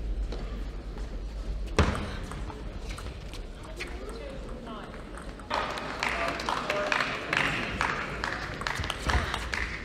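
A ping-pong ball clicks back and forth as it is hit with paddles and bounces on a table.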